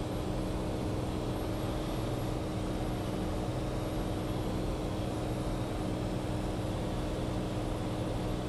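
A small plane's propeller engine drones steadily from inside the cabin.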